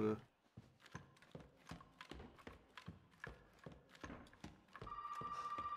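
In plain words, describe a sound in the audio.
Footsteps creak slowly across a wooden floor.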